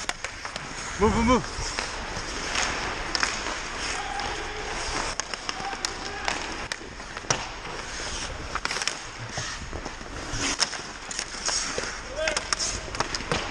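Young men shout to each other from across the ice.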